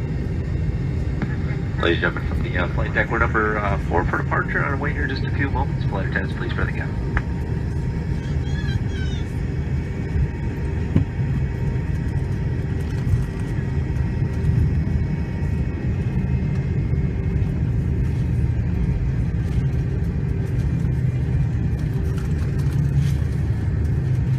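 An airliner's engines rumble steadily, heard from inside the cabin.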